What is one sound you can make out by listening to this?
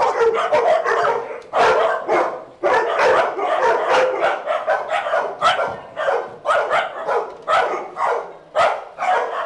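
Several dogs bark loudly and repeatedly in an echoing room.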